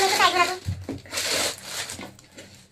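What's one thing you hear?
Cardboard scrapes and taps as a box is handled.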